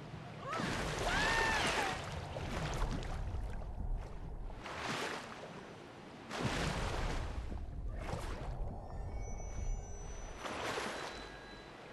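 Water splashes loudly as a shark breaks the surface and dives back in.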